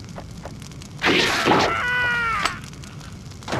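Swords clash and ring with metallic strikes.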